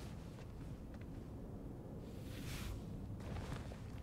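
A body is dragged across a hard floor.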